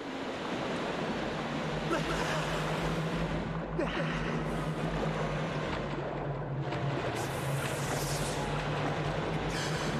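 Water splashes and sloshes as someone swims.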